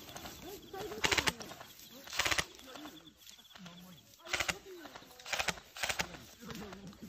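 A rifle fires sharp shots outdoors.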